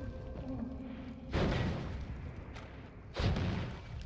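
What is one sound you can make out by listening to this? A weapon fires in short, sharp blasts.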